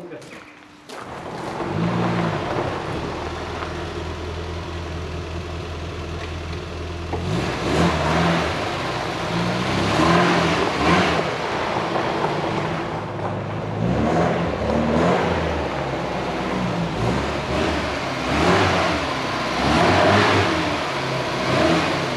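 A car engine starts and idles roughly, revving now and then.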